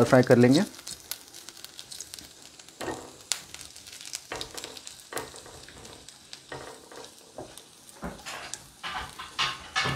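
A spatula scrapes and stirs around a pan.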